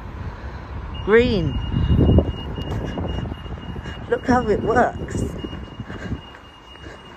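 A pedestrian crossing signal beeps in a rapid, steady high tone.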